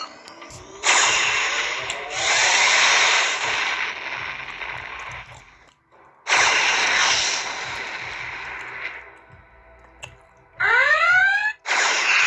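A spaceship engine roars and whooshes in loud bursts.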